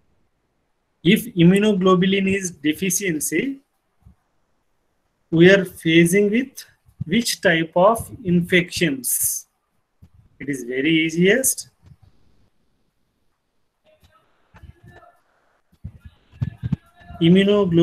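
A young man speaks calmly through an online call, pausing between phrases.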